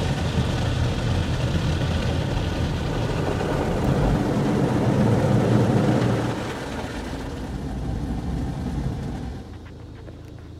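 Water sprays hard against a car's windshield and roof.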